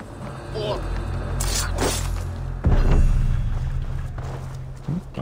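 A blade strikes hard in a fight.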